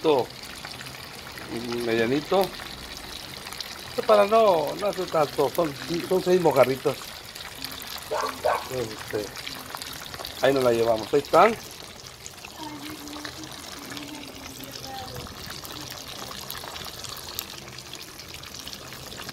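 Fish sizzles and bubbles as it deep-fries in hot oil.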